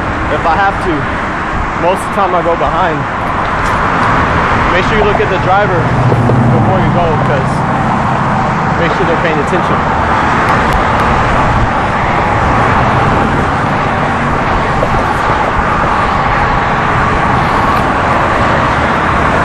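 Traffic roars steadily past on a nearby highway.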